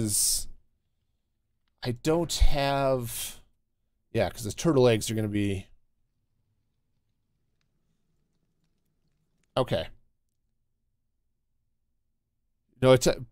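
A man talks casually into a close microphone, in short bursts with pauses.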